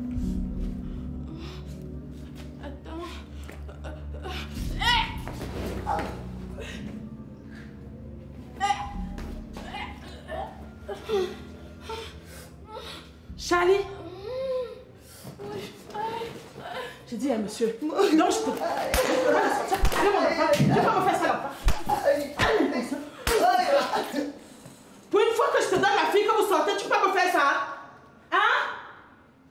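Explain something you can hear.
A middle-aged woman scolds angrily, close by.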